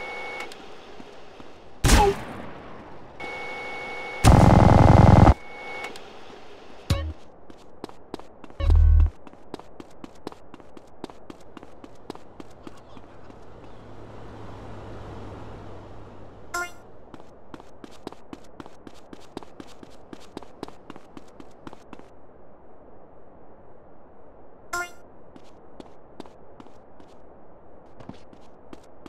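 Quick footsteps run over hard ground.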